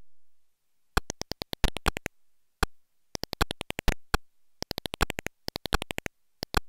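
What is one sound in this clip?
Retro electronic laser shots zap in quick bursts.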